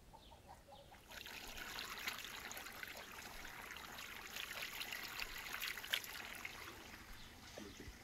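Water pours and splashes over carrots.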